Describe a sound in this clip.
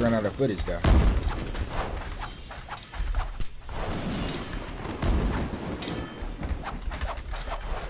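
Sword blows strike with sharp clashing hits.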